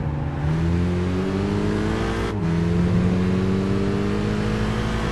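A racing car engine roars and climbs in pitch as it speeds up.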